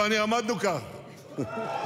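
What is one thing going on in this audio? A man speaks into a microphone to an audience.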